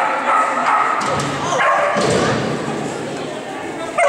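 A seesaw thuds down as a dog runs across it.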